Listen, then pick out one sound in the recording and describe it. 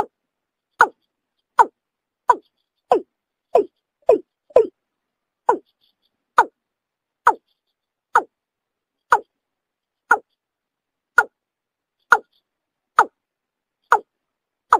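A bird calls in short, sharp, evenly spaced notes.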